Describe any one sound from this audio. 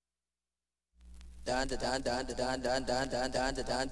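Rhythmic dance music starts suddenly and plays loudly.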